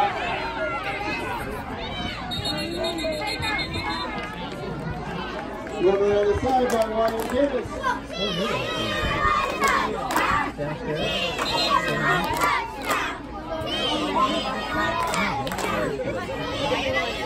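Men on the sideline shout encouragement loudly.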